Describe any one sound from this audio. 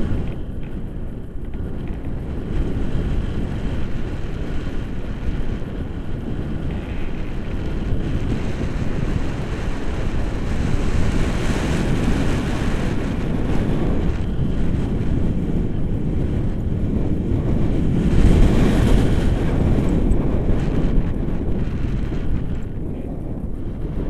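Strong wind rushes and buffets loudly, swelling and easing.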